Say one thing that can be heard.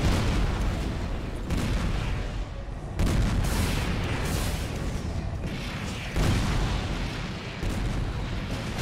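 Jet thrusters roar steadily.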